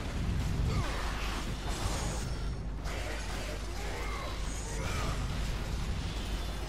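Flaming blades whoosh through the air.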